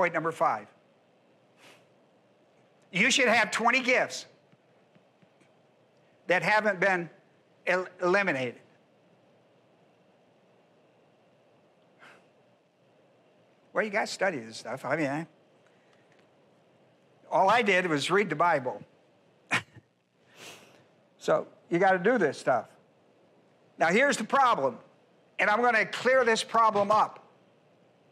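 An elderly man speaks calmly through a microphone, pausing often.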